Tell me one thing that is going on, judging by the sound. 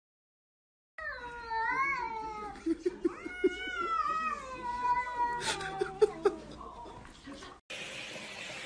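A cat meows loudly several times.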